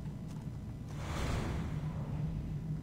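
A sudden whoosh bursts close by.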